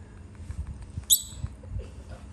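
A baby macaque squeaks with high chirps.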